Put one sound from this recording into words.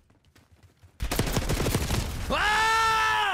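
Rapid automatic gunfire rattles loudly.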